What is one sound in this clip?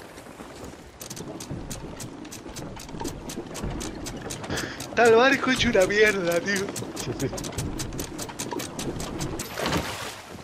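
An anchor winch ratchets with rapid, even clicks.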